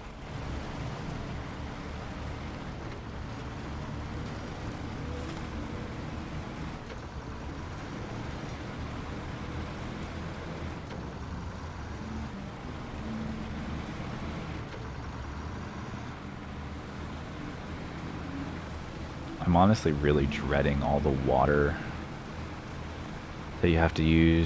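A heavy truck engine rumbles steadily as it drives along.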